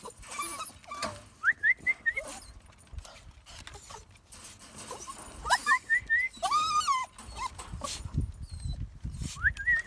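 Small dogs whine and yelp excitedly close by.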